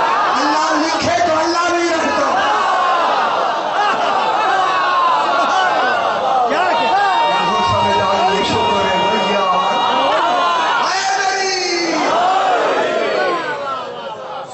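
An elderly man speaks with passion through a loudspeaker system, outdoors.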